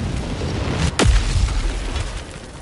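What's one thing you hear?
A heavy object slams into the ground with a loud boom.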